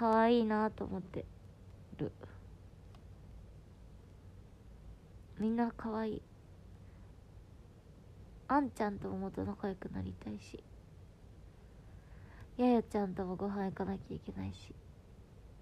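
A young woman speaks softly and tearfully in short bursts, close to a microphone.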